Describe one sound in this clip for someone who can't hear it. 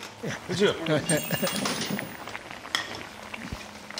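A stew bubbles and simmers in a pot.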